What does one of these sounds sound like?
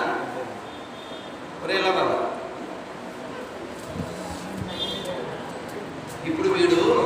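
A man speaks calmly into a microphone, heard through a loudspeaker in an echoing room.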